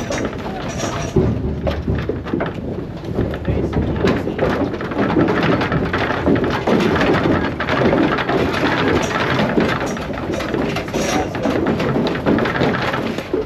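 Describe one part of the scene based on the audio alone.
Cow hooves clatter and thump on a trailer's metal floor.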